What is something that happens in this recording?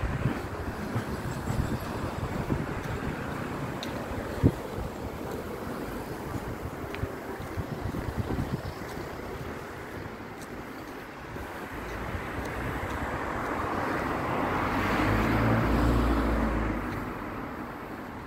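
Wind gusts outdoors and rumbles against the microphone, growing stronger toward the end.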